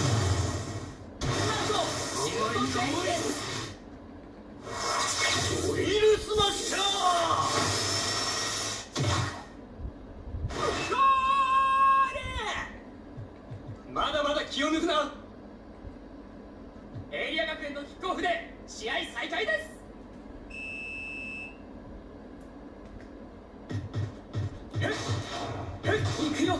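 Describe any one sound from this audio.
Game music and sound effects play from a television.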